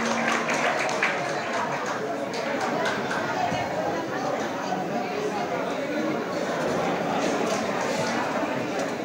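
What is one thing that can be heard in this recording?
An accordion plays a lively tune through loudspeakers in a large room.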